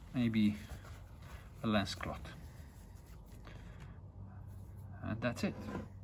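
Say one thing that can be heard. A cloth rustles as it is folded and rubbed.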